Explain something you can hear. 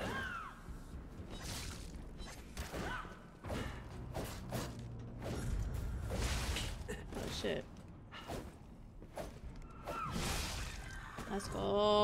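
Blades clash and strike in quick, sharp blows.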